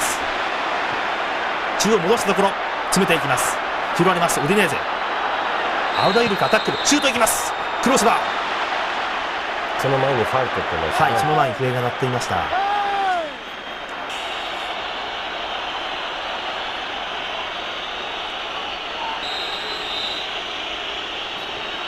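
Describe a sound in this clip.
A large stadium crowd roars and chants in the open air.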